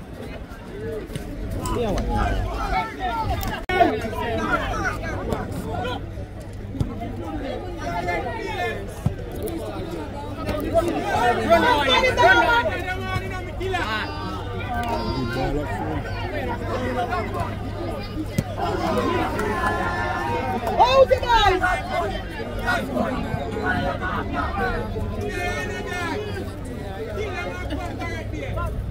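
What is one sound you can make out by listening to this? Young men shout and call out to each other outdoors across an open field.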